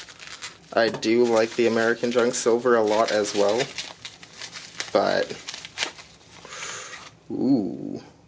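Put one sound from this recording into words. Bubble wrap crinkles and rustles in hands.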